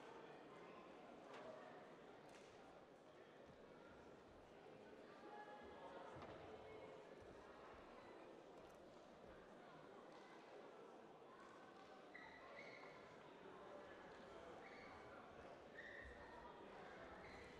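Men talk quietly at a distance in a large echoing hall.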